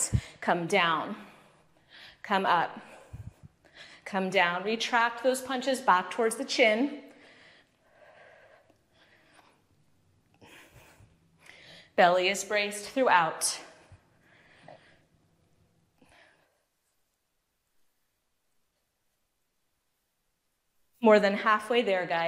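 A woman speaks clearly into a close microphone, instructing calmly between pauses.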